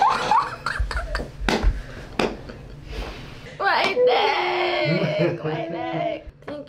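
A young woman laughs heartily close by.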